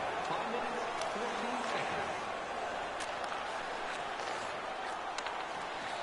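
A hockey stick clicks against a puck on ice.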